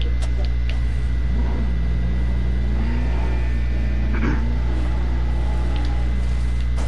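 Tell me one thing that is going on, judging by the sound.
A car engine revs and hums.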